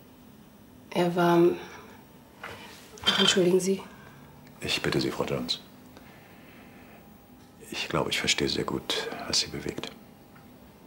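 A middle-aged man speaks in a low, calm voice nearby.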